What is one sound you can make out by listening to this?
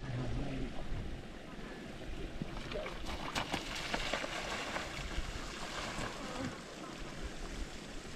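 Bicycle tyres splash through shallow water.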